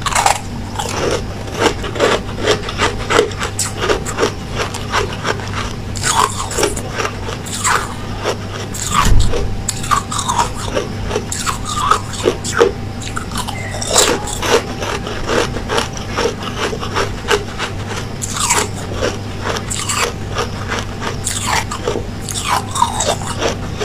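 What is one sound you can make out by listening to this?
Ice crunches loudly between teeth, close up.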